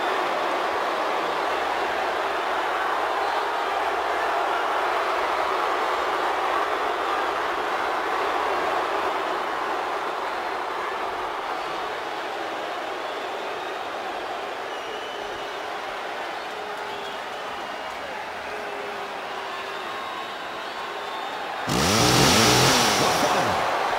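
A large crowd cheers and murmurs steadily in a big echoing arena.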